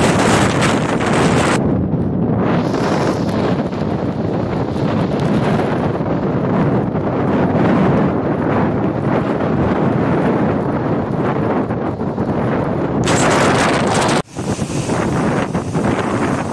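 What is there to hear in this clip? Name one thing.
Waves from a rough sea crash against a sea wall.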